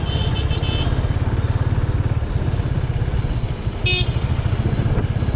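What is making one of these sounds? A motorcycle engine thumps steadily at close range.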